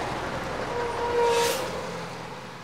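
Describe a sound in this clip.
A small car whooshes past.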